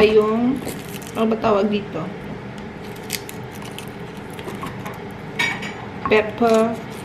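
A small knife scrapes and peels a garlic clove.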